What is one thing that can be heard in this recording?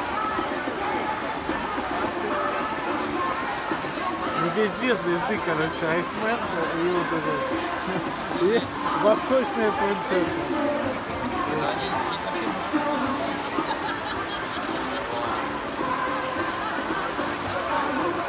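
Ice skates scrape and glide across ice.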